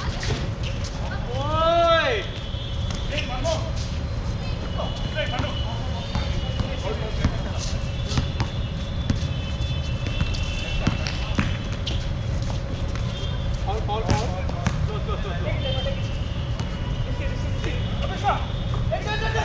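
Young men call out to each other across an open court.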